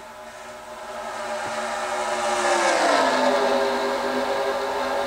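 A pack of race cars whooshes past, rising and then falling in pitch.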